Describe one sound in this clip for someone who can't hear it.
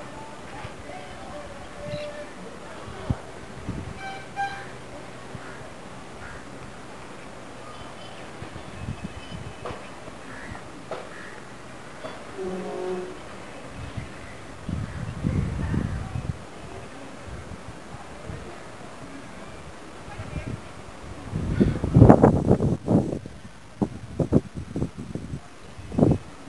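Wind blows across an open rooftop outdoors.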